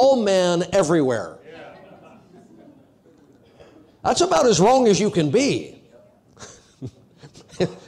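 A middle-aged man preaches with animation into a microphone in an echoing hall.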